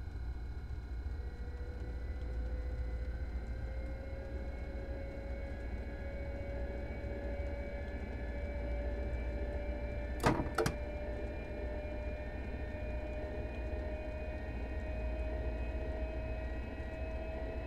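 A train's motor whine slowly rises in pitch as it speeds up.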